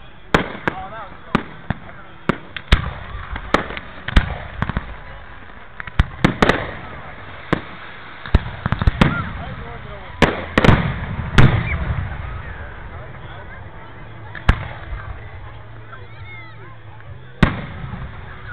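Fireworks bang and crackle overhead, some near and some far.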